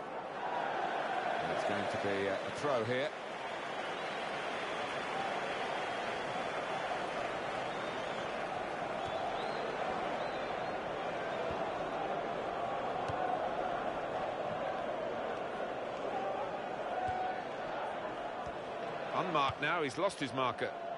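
A stadium crowd murmurs and chants steadily.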